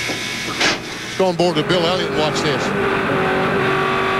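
Race cars crash and scrape.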